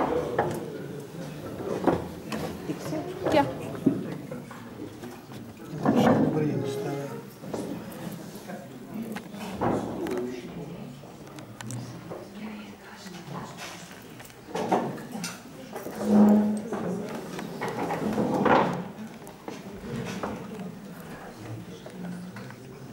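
A crowd of men and women chatter at tables.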